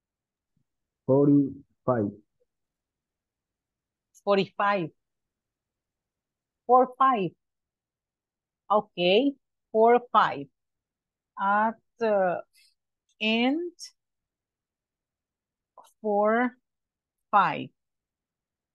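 A woman speaks slowly over an online call, in short phrases with pauses between them.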